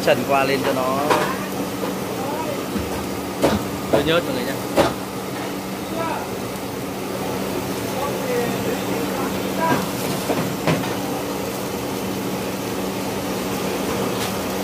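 Oil sizzles in a pan.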